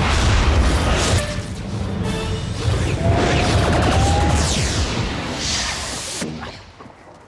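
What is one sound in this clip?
A loud rushing whoosh sweeps past.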